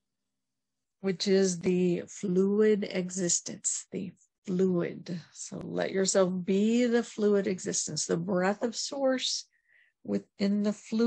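A woman speaks calmly and warmly close to a microphone.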